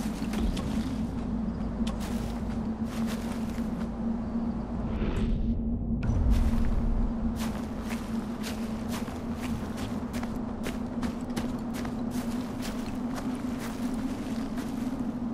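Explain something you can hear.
Footsteps crunch through dry grass at a steady walking pace.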